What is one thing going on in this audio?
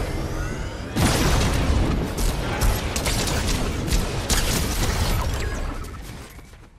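Rapid gunshots crack in a video game.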